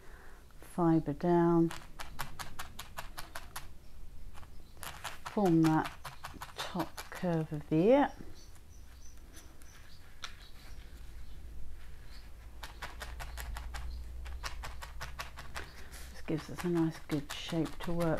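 Fingers tap and press loose wool against a card in quick repeated jabs.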